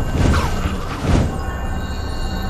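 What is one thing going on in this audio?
A heavy thud sounds as a figure lands from flight.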